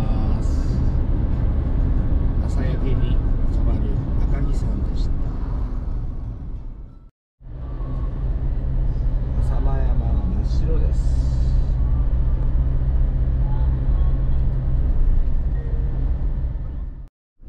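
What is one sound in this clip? A car's tyres rumble steadily on a highway.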